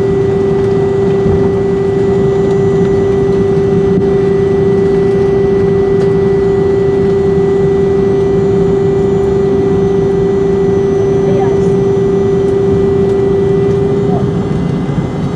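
A high engine whine sounds loudly, then drops away.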